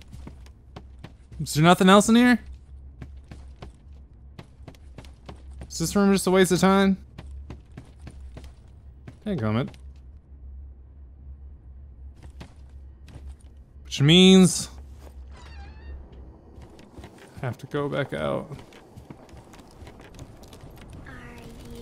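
Footsteps patter across a wooden floor.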